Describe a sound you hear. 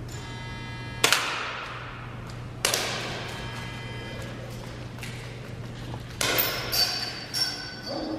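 A small handheld gun fires sharp shots that echo around a large hall.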